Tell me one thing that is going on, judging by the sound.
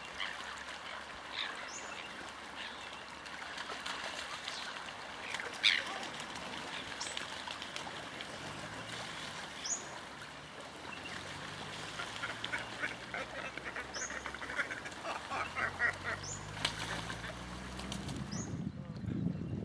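Seabirds call over open water.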